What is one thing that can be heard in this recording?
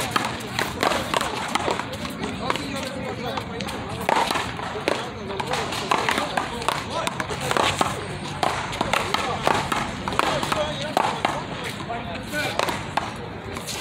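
Shoes scuff and squeak on a hard court.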